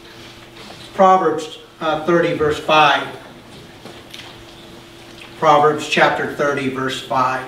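A middle-aged man speaks calmly through a microphone in a large room.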